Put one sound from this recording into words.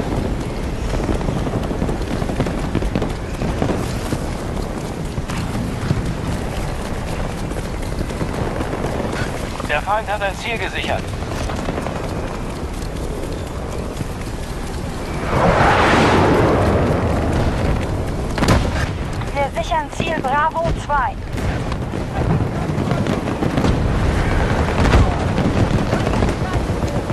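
Heavy rain pours steadily outdoors in a storm.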